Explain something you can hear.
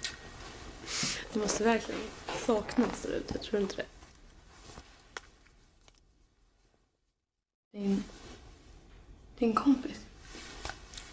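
A young woman speaks softly and close by.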